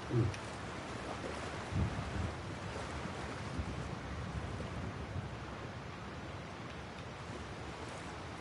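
A man speaks quietly into a microphone, with short pauses.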